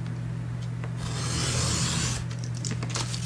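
A craft knife scores along cardboard with a scratching sound.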